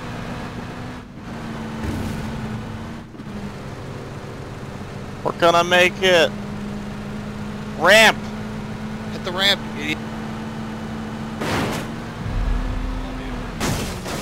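A car engine drones steadily while driving.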